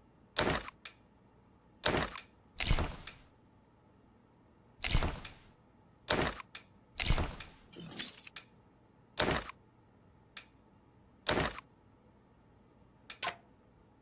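Short rustling clicks sound again and again as gear is picked up and put away.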